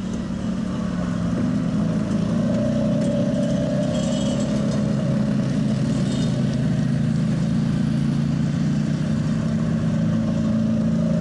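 Quad bike engines drone and rev nearby, outdoors.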